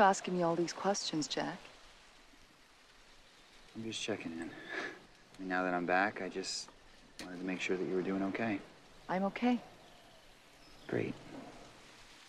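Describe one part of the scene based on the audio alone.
A young woman speaks softly and earnestly.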